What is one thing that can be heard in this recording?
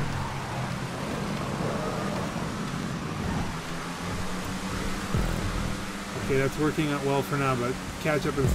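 A race car engine roars steadily at speed.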